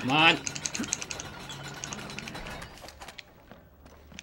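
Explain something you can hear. A metal winch crank ratchets with quick, repeated clicks.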